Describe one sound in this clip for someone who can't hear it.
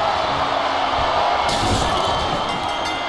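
A body crashes heavily onto a wooden table.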